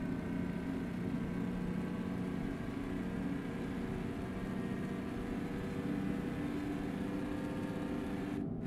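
A truck engine drones steadily as it drives.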